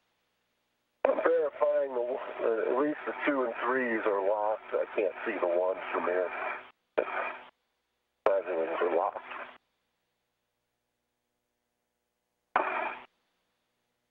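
A man speaks calmly over a crackly radio link, in short bursts.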